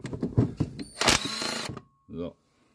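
A power wrench whirs briefly.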